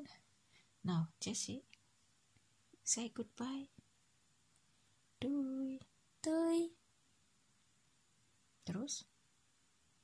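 A woman talks close by in a calm voice.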